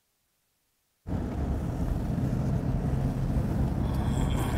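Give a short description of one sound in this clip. Car engines rumble as vehicles drive alongside.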